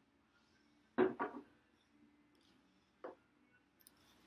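Metal tins and a glass jar knock down onto a hard counter.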